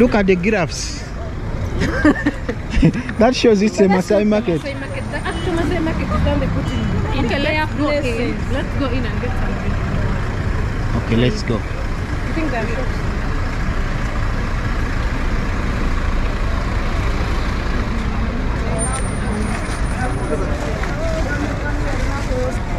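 City traffic hums steadily on a busy street outdoors.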